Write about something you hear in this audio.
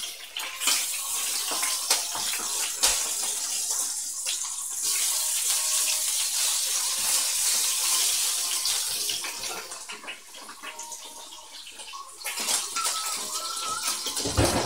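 Food sizzles in a hot frying pan.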